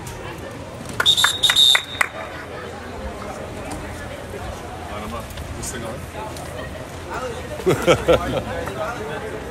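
Players clap their hands together in unison.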